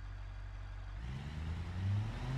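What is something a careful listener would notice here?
A van's engine hums low and slowly rises in pitch.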